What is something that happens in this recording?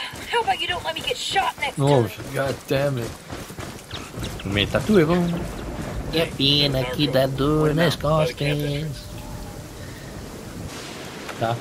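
Footsteps rustle through dry grass and bushes.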